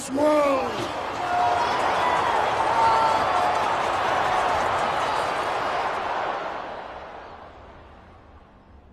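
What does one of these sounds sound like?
A large crowd roars and cheers, then fades away.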